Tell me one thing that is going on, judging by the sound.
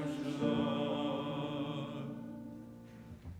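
A group of people sings together in a room with some echo.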